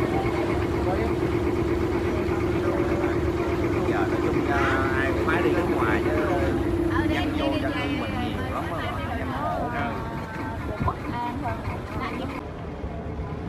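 Men and women chatter nearby.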